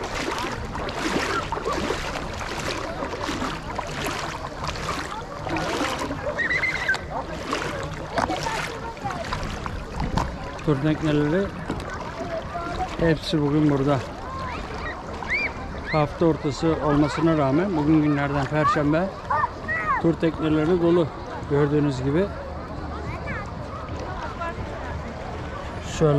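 Small waves lap and splash close by.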